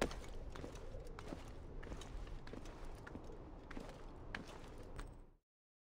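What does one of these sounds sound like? Hands and feet scrape and knock against rock while climbing.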